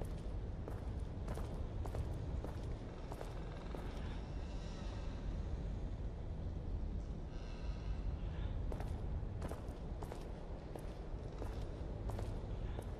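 Footsteps echo on a stone floor in a large, reverberant hall.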